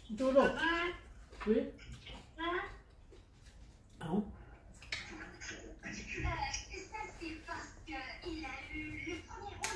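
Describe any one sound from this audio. Cutlery clinks on plates.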